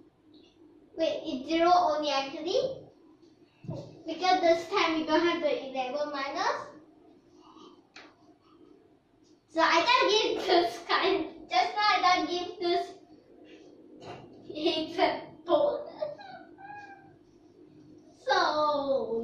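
A young girl speaks clearly and brightly, close by.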